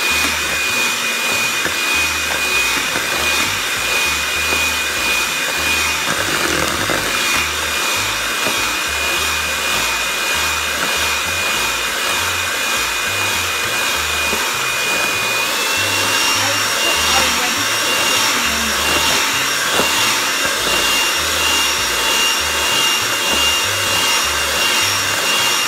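An electric hand mixer whirs steadily, its whine rising slightly partway through.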